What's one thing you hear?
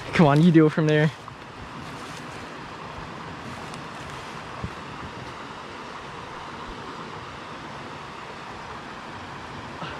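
Dry leaves rustle as hands dig through them.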